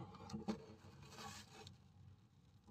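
A hand brushes softly against fabric.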